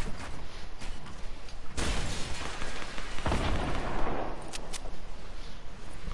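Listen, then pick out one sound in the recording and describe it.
Footsteps clatter quickly across wooden planks.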